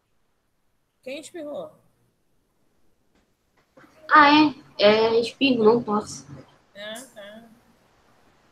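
A child speaks through an online call.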